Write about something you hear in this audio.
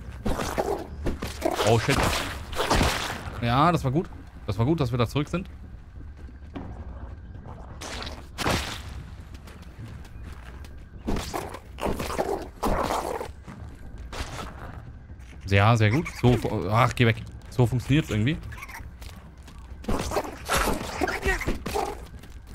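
A weapon strikes a giant beetle with dull thuds.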